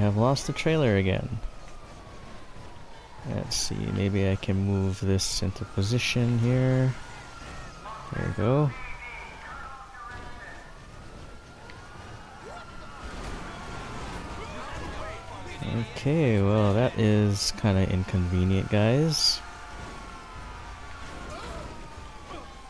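Police sirens wail in rising and falling sweeps.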